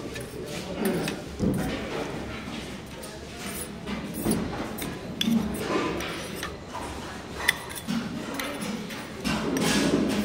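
A metal spoon scrapes and clinks against a small steel bowl.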